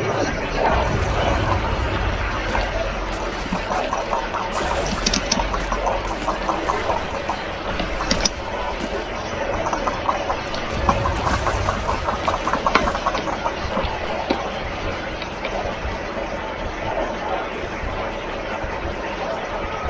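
Magic blasts crackle and thud.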